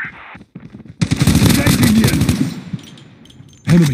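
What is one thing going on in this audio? Rapid gunfire rattles in short loud bursts.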